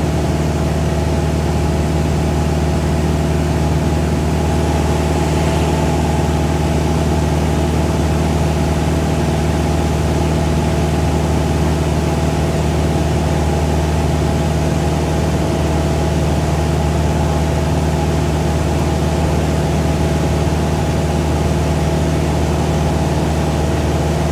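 Wind rushes past the outside of a small plane.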